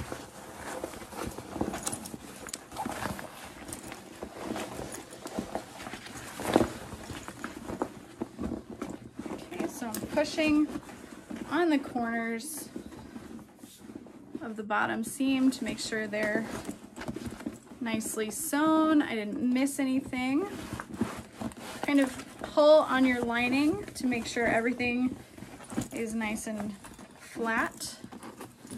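Fabric rustles as a bag is handled and unfolded.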